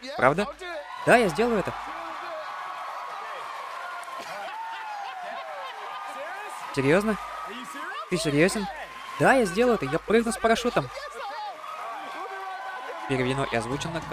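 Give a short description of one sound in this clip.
A studio audience cheers and applauds.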